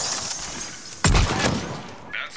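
Bullets shatter debris with a crackling burst.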